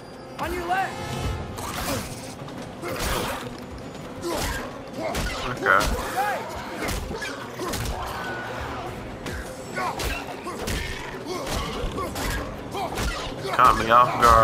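A beast snarls and growls.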